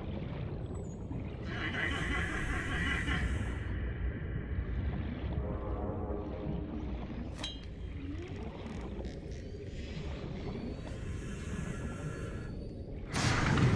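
Water rumbles and swirls steadily all around while swimming underwater.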